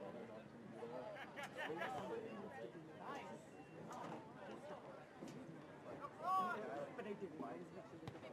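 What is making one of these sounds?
Spectators nearby cheer and call out.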